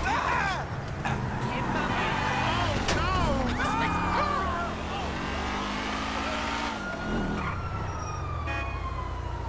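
A car engine roars as it accelerates.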